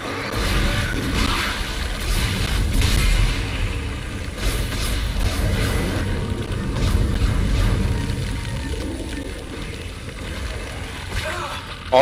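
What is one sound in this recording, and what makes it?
Gunfire and blasts boom and crackle in quick bursts.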